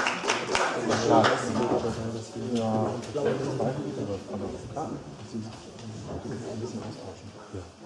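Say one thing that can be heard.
A tuba plays a low, slow melody.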